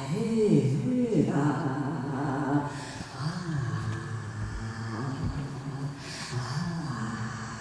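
A double bass plays a low, sliding melody.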